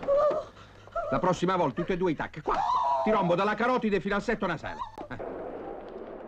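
A middle-aged man shouts back with animation.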